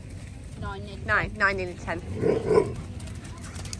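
Dogs yip and howl playfully nearby.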